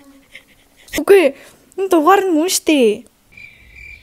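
A young woman sings a short melody close by.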